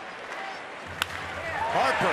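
A baseball bat cracks against a pitched ball.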